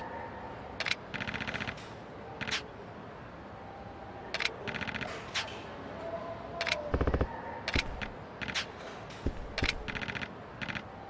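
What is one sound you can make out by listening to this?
Rapid electronic ticks chatter in short bursts.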